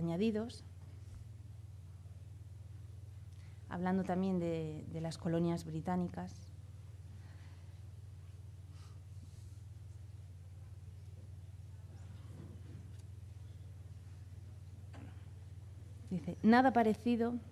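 A young woman speaks calmly into a microphone, pausing between phrases.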